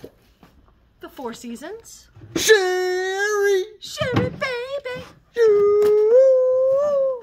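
A young woman speaks close by with animation, stretching out her words in a sung, drawn-out way.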